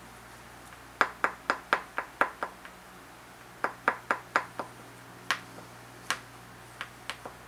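An antler tool taps sharply against a flint, chipping off flakes.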